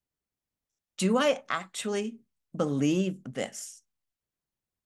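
An older woman speaks calmly and clearly into a close microphone.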